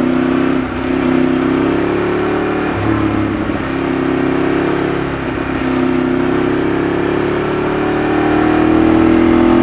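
Wind rushes past a moving motorcycle.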